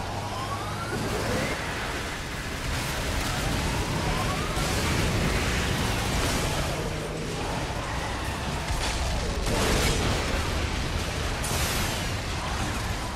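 A truck engine roars steadily as it drives fast.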